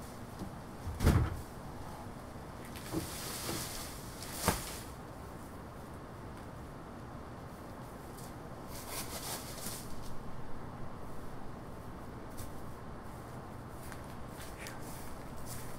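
Dry palm fronds and branches crackle and thud as they are tossed onto a pile outdoors.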